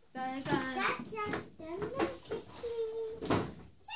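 Cardboard packaging rustles and tears.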